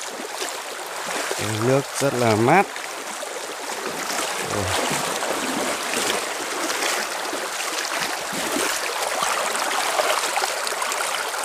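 A shallow stream gurgles and splashes over stones close by.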